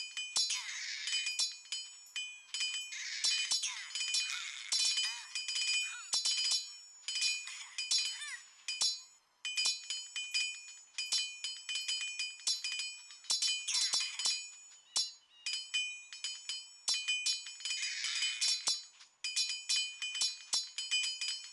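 Swords clash and clang repeatedly in a battle.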